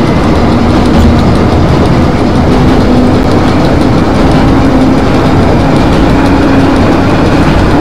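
Train wheels click rhythmically over rail joints.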